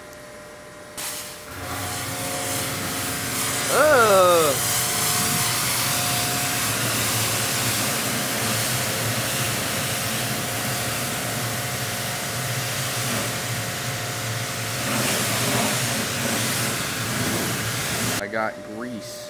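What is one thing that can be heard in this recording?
A pressure washer sprays water with a loud, steady hiss.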